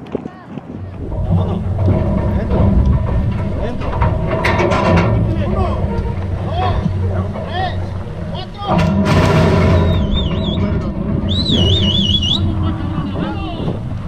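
Men talk nearby in calm voices.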